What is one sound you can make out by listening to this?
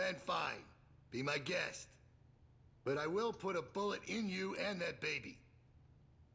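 A man speaks tensely and urgently.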